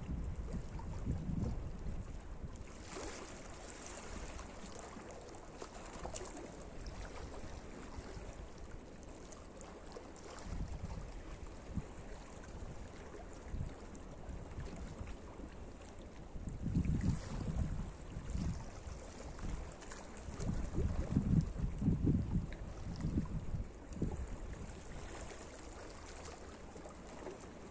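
Wind gusts outdoors, rumbling low.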